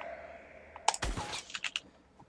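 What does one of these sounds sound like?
A gun fires a single shot.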